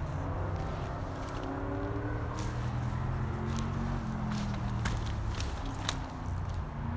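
Footsteps crunch on dry sand and twigs.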